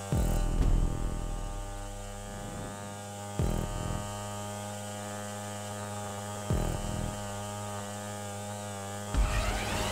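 A motorcycle engine revs loudly at high speed, with bursts as it shifts gears.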